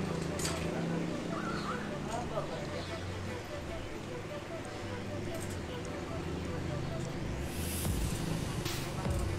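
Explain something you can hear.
A bicycle wheel's hub ticks steadily as the wheel is turned.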